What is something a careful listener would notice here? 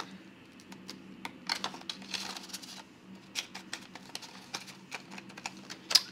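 Paper bills rustle and crinkle close by.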